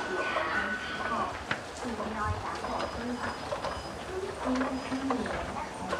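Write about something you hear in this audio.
An escalator hums and rumbles.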